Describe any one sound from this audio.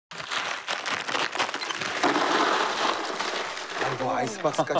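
Ice cubes rattle and clatter as they pour into a cooler.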